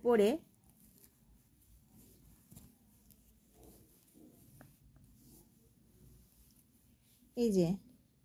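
Coarse fabric rustles softly as hands handle it.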